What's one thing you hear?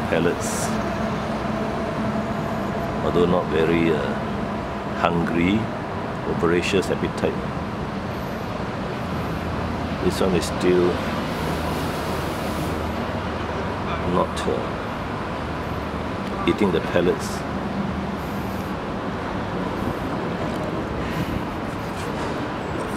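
Water sloshes softly as a turtle paddles in a shallow tub.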